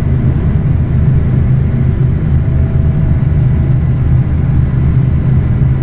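A truck engine rumbles steadily at cruising speed.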